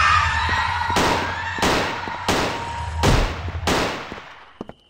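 A gun fires several loud shots that ring out.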